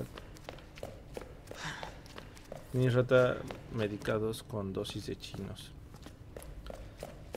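Footsteps tread slowly along a hard floor.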